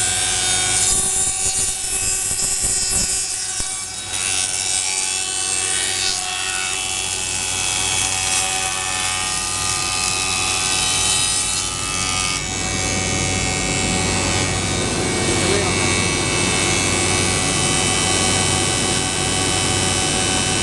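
A woodworking machine runs with a loud, steady whine.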